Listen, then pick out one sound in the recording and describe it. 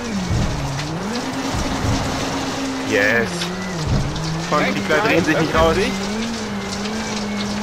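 Tyres crunch and hiss over gravel.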